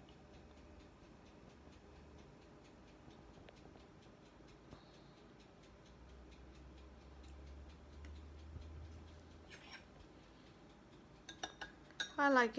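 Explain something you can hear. A stirrer swishes through liquid in a glass.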